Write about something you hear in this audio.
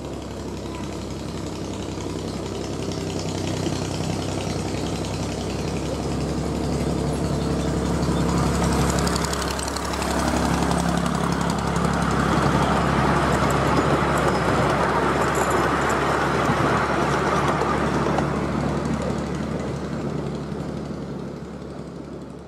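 A small engine of a miniature train chugs as it approaches, passes close by and fades away.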